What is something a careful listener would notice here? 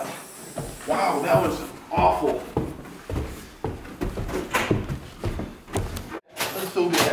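Footsteps tread quickly on stairs.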